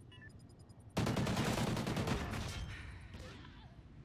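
A rifle fires a loud burst of shots that echo away.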